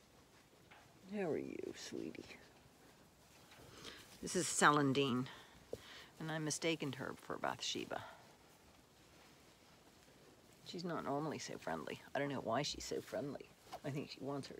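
An elderly woman talks calmly and close by.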